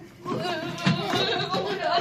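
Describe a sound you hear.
A young girl laughs.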